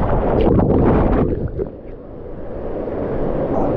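Water churns and bubbles, heard muffled underwater.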